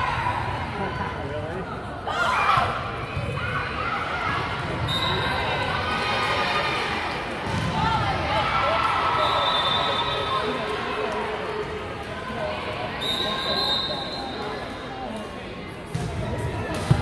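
Young women's voices chatter and call out in a large echoing gym.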